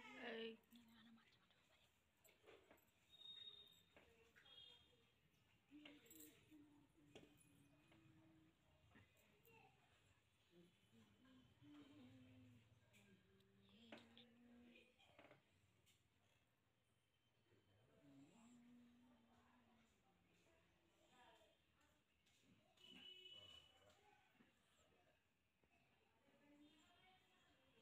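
Fingers rustle softly through hair close by.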